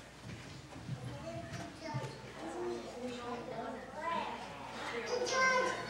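Several adults chat quietly in an echoing room.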